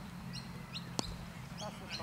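A cricket bat strikes a ball with a sharp crack in the distance.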